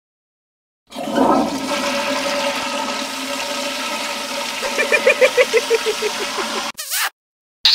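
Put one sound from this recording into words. Water swirls and rushes in a flushing toilet.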